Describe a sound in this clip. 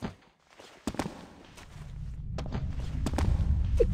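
Boots scrape against stone.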